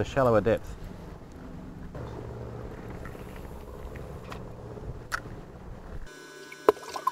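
A fishing reel clicks as a man winds its handle.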